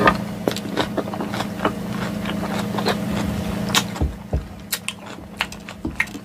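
A fork scrapes and clinks against a glass bowl.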